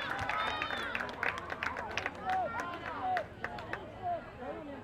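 Spectators clap their hands.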